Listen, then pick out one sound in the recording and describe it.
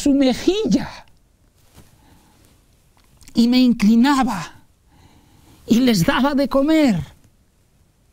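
An elderly man speaks expressively into a close microphone, in short phrases with pauses.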